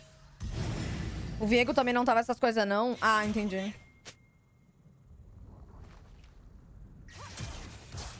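Game sound effects of spells and clashes play.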